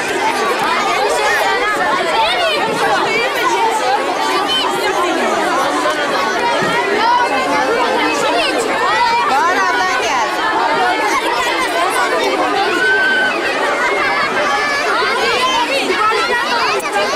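A large crowd of children chatter and shout all around, outdoors.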